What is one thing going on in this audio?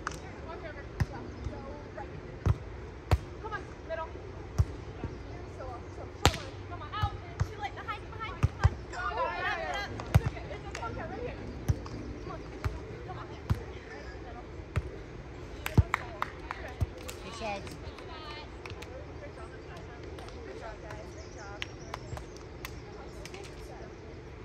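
Hands strike a volleyball with sharp slaps, again and again, outdoors.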